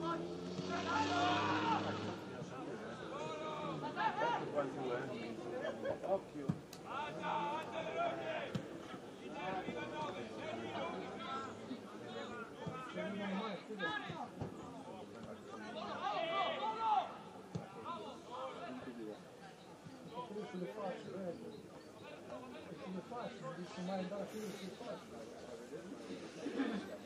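A football is kicked with dull thuds on an open field.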